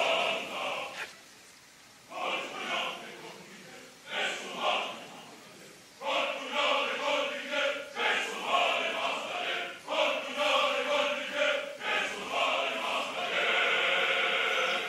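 A man sings loudly in a full operatic voice.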